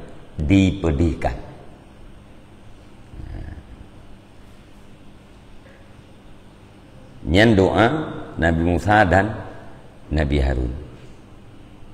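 A middle-aged man speaks slowly and calmly into a close microphone, with long pauses.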